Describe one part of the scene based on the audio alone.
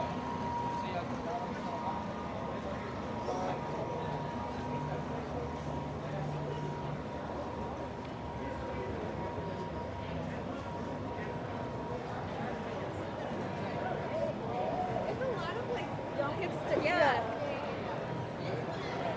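A crowd of people chatter outdoors in the street.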